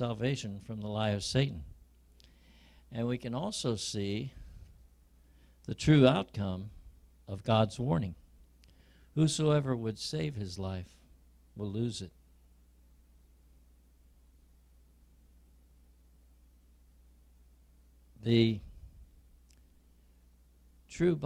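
A man speaks through a microphone and loudspeakers in a hall, preaching with pauses.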